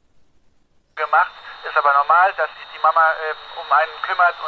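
A voice crackles loudly over a radio scanner's small speaker.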